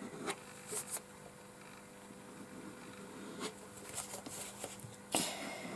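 A paper tissue dabs and rubs softly against paper.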